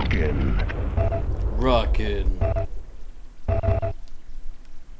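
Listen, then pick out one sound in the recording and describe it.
A short electronic chime sounds several times.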